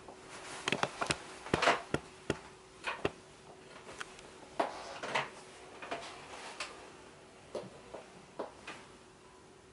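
A piano bench knocks and creaks as someone sits down.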